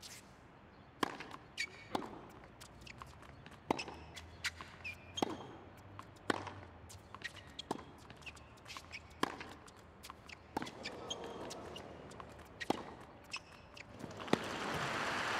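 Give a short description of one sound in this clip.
Tennis balls are struck sharply back and forth with rackets.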